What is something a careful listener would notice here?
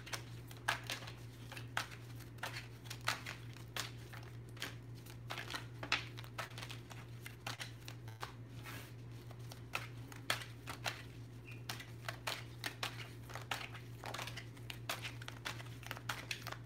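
Playing cards snap and click as they are shuffled by hand.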